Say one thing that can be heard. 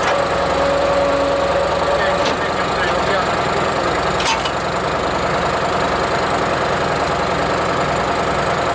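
A log splitter's engine runs with a steady loud drone.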